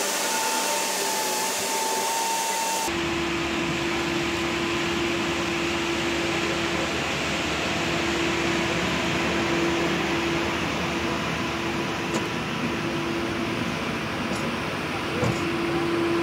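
A grinder wheel chews through a wood stump with a rough, churning grind.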